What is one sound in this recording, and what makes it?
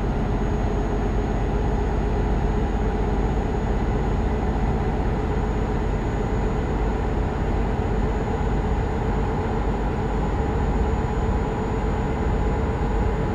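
A truck engine hums steadily while cruising.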